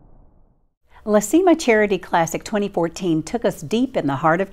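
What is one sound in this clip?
A woman speaks calmly and clearly into a microphone, close by.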